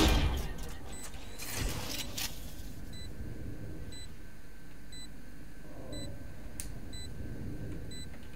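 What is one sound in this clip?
A device beeps high and short, about once a second.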